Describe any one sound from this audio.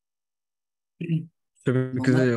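A young man speaks through a microphone, explaining calmly.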